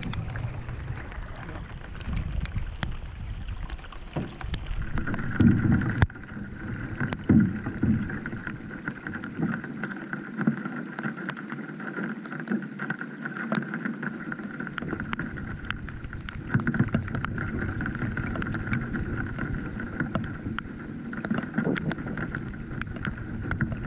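Rain patters on the water.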